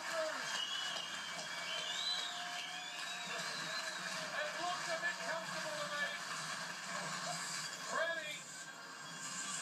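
A large crowd cheers and shouts outdoors, heard through a television speaker.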